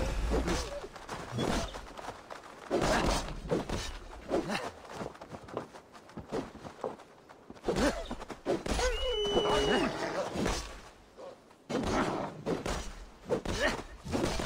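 Wolves snarl and yelp in a fight.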